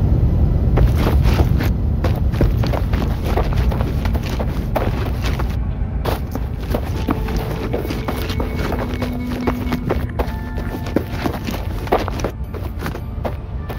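Footsteps crunch on dry gravelly ground at a run.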